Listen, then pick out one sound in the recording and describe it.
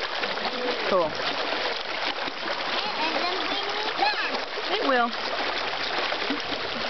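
Shallow water rushes steadily over rocks.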